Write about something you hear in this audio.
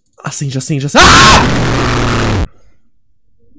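A loud shrill scream blares from a game.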